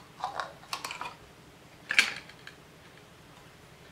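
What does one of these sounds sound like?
A plastic watch clicks against a hard surface as it is set down.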